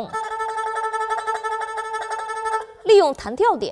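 An erhu holds a steady high note.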